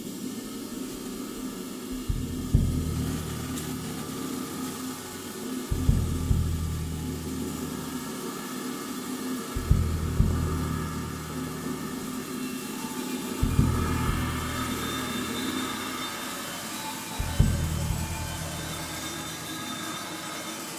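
Cymbals shimmer softly under light mallet strokes.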